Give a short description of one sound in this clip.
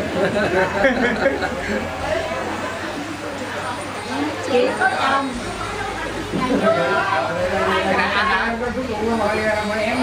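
Several men and women talk and chatter close by.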